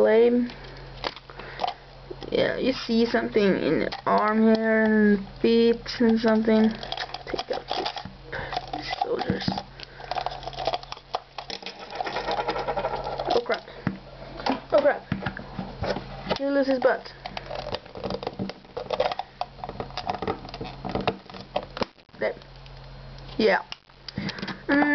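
Plastic toy parts click and rattle as they are handled.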